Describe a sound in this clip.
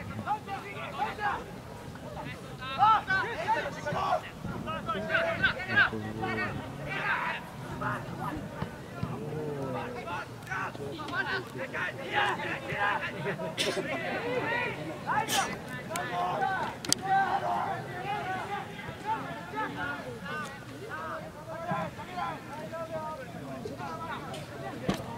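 Young spectators chatter and call out close by.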